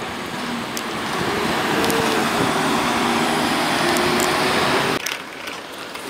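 Traffic hums along a street.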